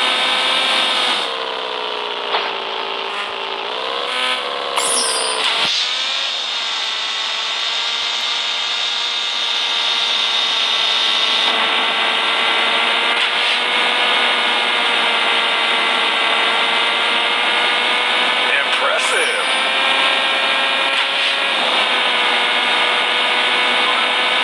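A motorcycle engine whines steadily at high revs, rising and falling in pitch as it speeds up and slows down.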